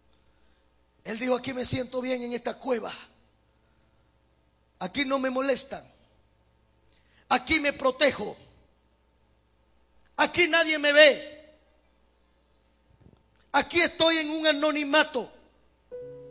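A man speaks with emphasis through a microphone, in short bursts with pauses.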